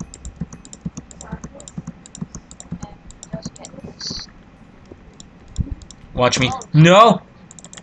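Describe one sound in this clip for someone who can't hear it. Blocks click softly as they are placed in a video game.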